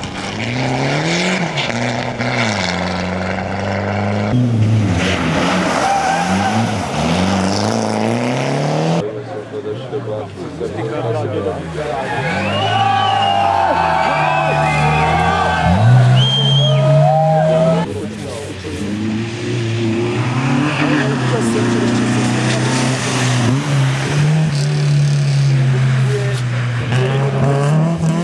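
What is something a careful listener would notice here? A rally car engine revs hard and changes pitch as the car speeds past.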